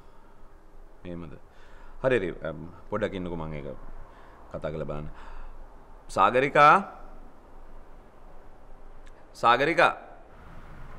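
A man speaks calmly and earnestly, close by.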